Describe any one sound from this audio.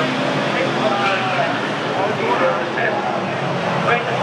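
A race car engine roars as the car spins its wheels.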